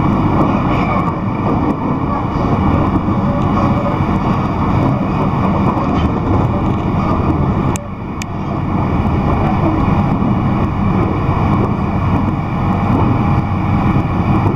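A vehicle rumbles steadily as it drives along.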